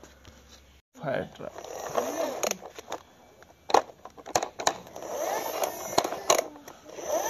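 Plastic toy wheels roll and rattle over rough ground.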